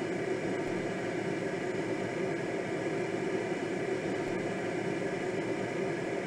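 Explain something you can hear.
Wind rushes steadily past a glider's cockpit in flight.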